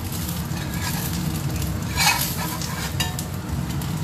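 A metal spatula scrapes against a pan.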